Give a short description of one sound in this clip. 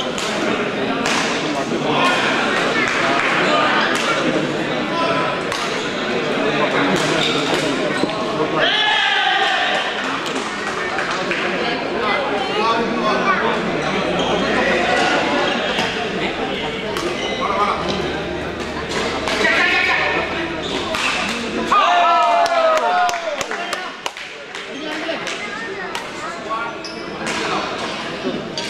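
Shuttlecocks are struck sharply with rackets, again and again.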